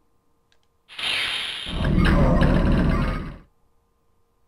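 A heavy metal door rumbles open.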